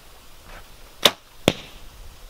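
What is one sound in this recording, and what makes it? A bowstring snaps sharply as an arrow is released.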